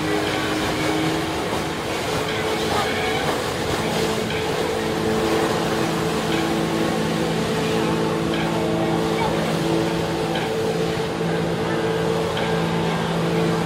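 Spray from a flyboard's jets splashes onto the water.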